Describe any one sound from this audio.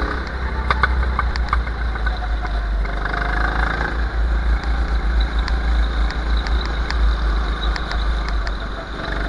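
A go-kart engine buzzes at speed.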